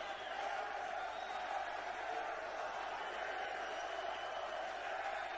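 A large crowd of men chants and cheers loudly in a big echoing hall.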